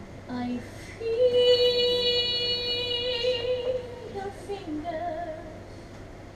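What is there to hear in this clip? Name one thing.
A young woman sings a long held note through a microphone.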